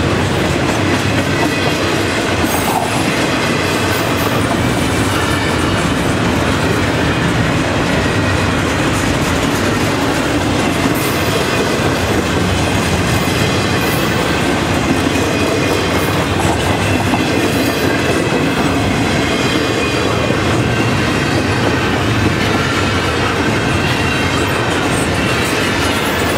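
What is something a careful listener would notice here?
A crossing bell rings steadily.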